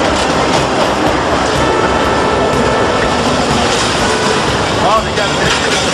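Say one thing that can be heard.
A freight train rumbles loudly past close by.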